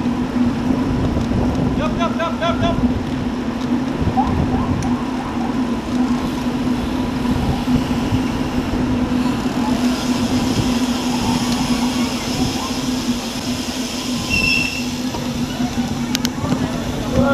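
Wind rushes steadily past the microphone outdoors.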